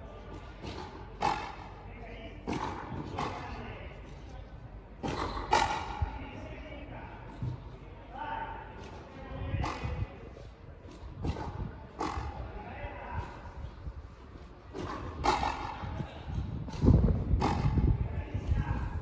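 A ball smacks off rackets and a wall with sharp echoing cracks in a large hall.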